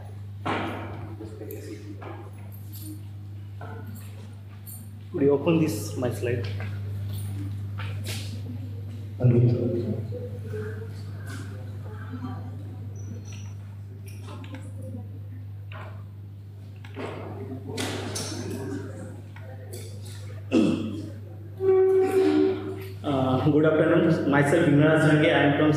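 A man speaks into a microphone in an echoing room.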